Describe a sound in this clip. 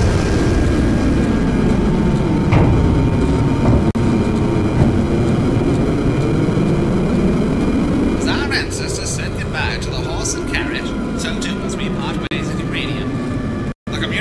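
A spacecraft engine hums with a low, steady rumble.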